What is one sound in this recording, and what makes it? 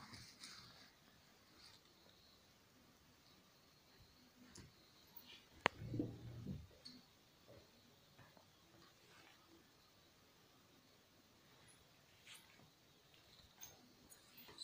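Fabric rustles as a blanket is moved and rubbed.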